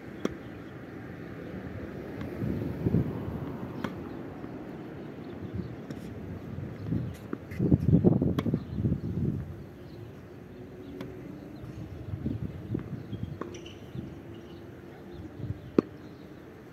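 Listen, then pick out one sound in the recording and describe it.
A tennis racket hits a ball with sharp pops.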